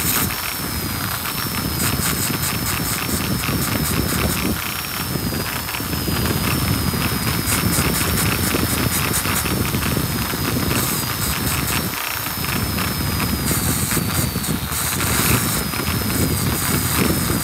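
A rotary tool whines steadily at high speed.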